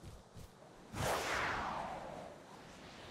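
A loud whoosh sweeps past and fades.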